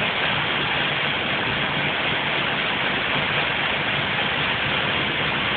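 Heavy rain pours steadily onto wet pavement outdoors.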